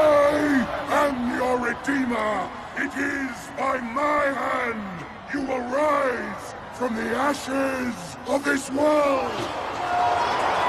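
An elderly man speaks slowly and forcefully through a booming loudspeaker, echoing off rock.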